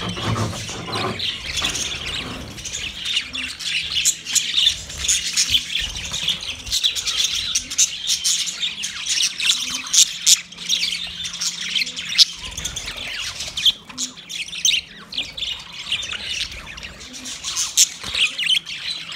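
Many budgerigars chirp and chatter busily.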